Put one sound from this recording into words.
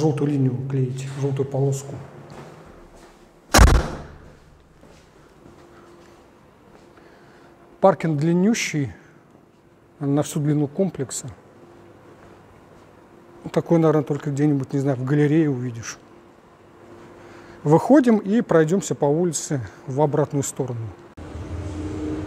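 A man talks calmly and close by, with pauses.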